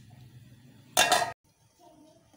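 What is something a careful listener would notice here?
A metal lid clanks against a cooking pot.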